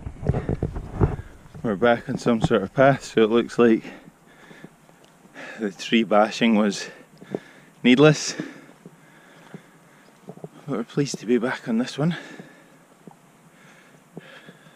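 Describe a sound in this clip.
Footsteps brush and crunch along a grassy path.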